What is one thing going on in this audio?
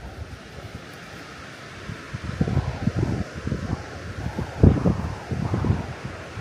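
A mountain stream rushes in the distance.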